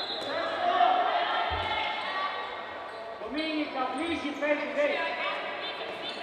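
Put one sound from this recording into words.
A handball bounces on the floor.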